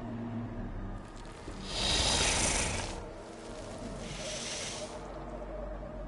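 A creature hisses loudly in two long bursts.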